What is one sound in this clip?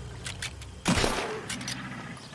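A gunshot cracks loudly and echoes.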